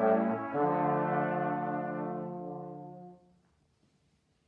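Brass instruments play a sustained chord together and fade out.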